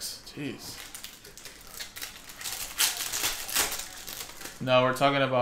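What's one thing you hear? Plastic wrapping crinkles as cards are unwrapped.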